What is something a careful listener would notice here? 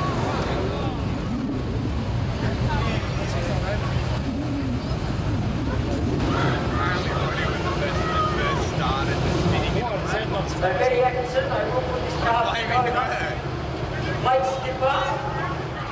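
Sprint car engines idle while the cars sit stopped.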